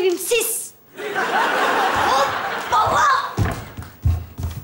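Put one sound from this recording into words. Two young women laugh loudly.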